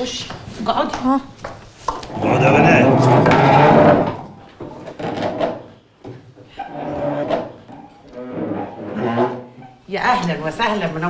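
A man speaks warmly nearby.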